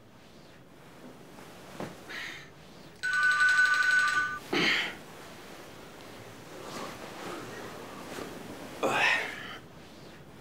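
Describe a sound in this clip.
Silky bedding rustles as a man tosses and sits up in bed.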